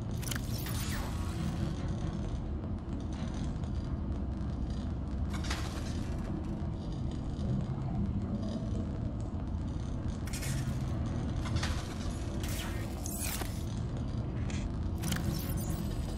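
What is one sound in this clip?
Soft electronic blips sound as items are picked in a menu.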